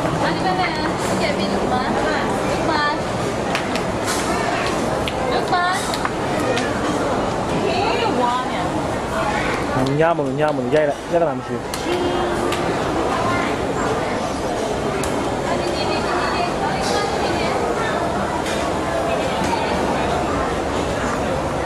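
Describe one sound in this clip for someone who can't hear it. Many people chatter and call out all around.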